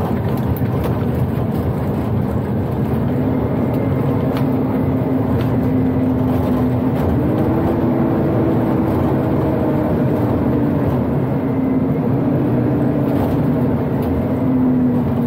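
Tyres rumble over a rough dirt road.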